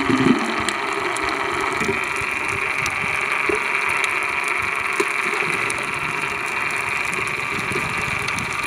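Water hisses in a steady, muffled rush.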